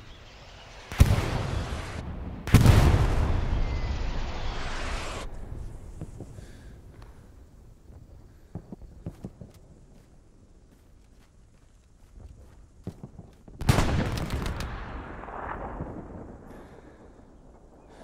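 Heavy explosions boom close by and rumble slowly away.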